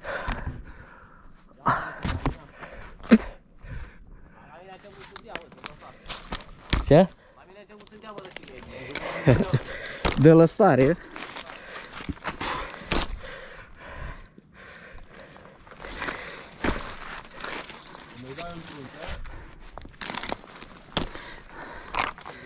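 Climbing gear clinks and rattles against a tree trunk.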